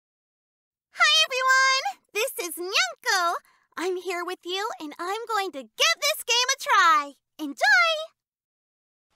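A young woman speaks in a high, animated voice.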